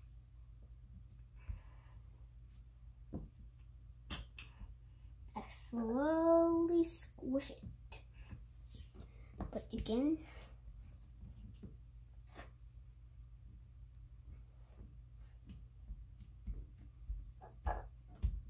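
Fingers tap lightly on a wooden floor.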